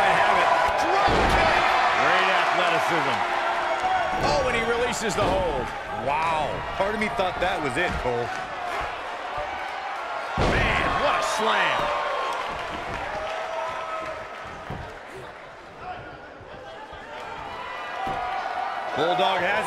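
Heavy bodies slam onto a wrestling ring mat with deep thuds.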